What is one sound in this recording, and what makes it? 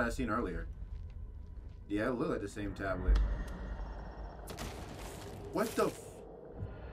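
A young man talks into a microphone close by, with animation.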